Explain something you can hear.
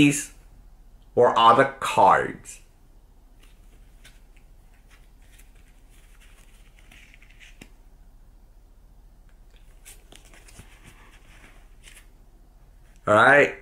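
Playing cards rustle in a man's hands.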